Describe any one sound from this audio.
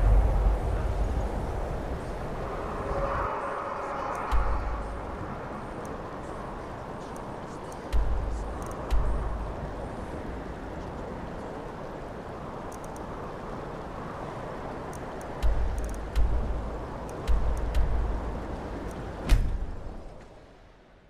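Wind blows steadily in a snowstorm.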